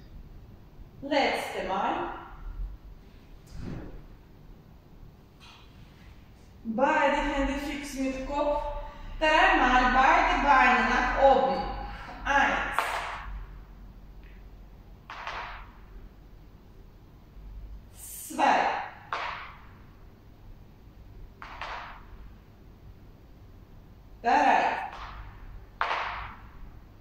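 A woman speaks calmly in a large echoing room.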